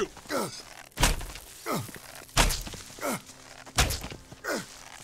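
A bow shoots arrows again and again with sharp twangs.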